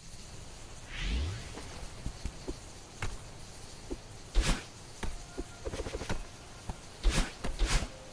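Short electronic game sounds of jumping and dashing pop out now and then.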